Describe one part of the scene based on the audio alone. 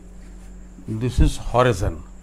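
An elderly man speaks up close, explaining.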